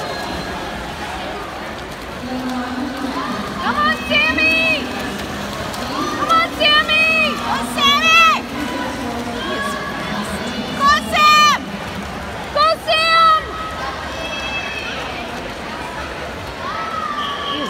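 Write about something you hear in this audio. Swimmers splash through water.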